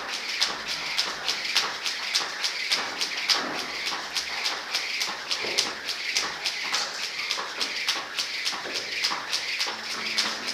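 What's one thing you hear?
A skipping rope whips and slaps the floor in a quick steady rhythm.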